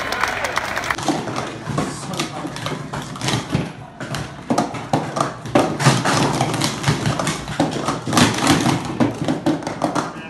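Plastic cups clack rapidly as they are stacked on a table.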